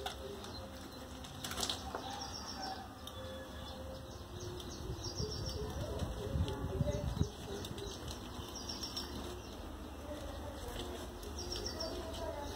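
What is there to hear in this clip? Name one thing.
A cat laps food from a metal bowl.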